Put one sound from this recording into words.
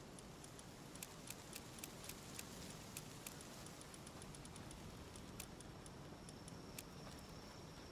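Soft interface clicks tick quickly one after another.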